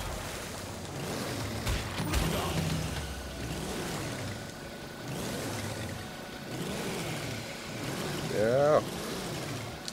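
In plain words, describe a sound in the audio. Water splashes and rushes.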